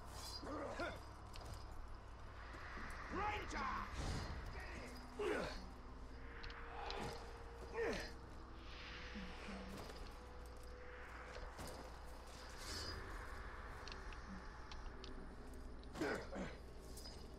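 Heavy thuds of landings and footsteps sound now and then.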